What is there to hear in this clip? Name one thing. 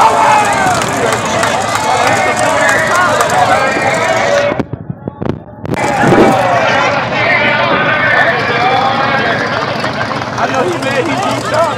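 A drag racing car's engine roars loudly.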